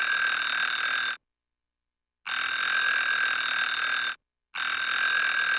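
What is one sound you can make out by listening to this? An alarm clock bell rings loudly in long bursts.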